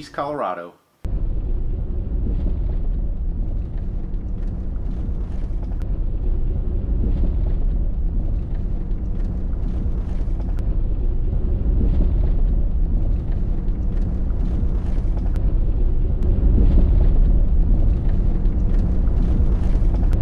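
A car's tyres and engine rumble steadily on the road.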